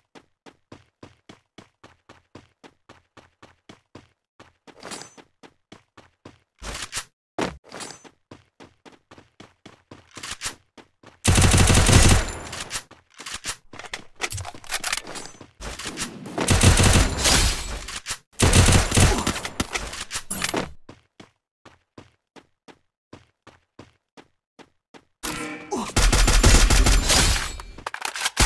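Footsteps patter quickly as a game character runs over grass.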